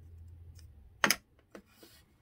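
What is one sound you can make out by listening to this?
A small block of wood knocks down onto a board.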